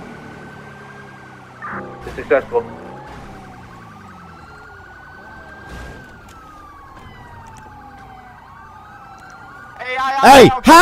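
A siren wails, slowly rising and falling.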